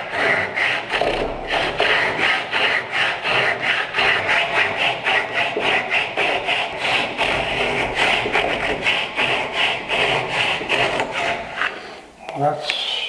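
Sandpaper rasps rapidly back and forth over wood.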